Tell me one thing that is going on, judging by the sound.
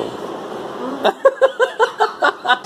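A middle-aged woman laughs in short bursts.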